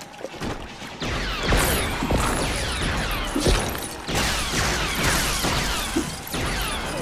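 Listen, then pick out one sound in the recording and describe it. Many little coins jingle in quick chimes as they are collected.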